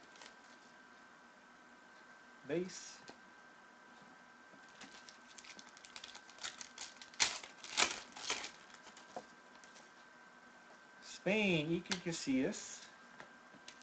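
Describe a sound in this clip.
Paper trading cards rustle and flick as hands shuffle them.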